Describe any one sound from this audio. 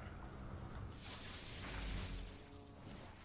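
An electric crackle and zap bursts out.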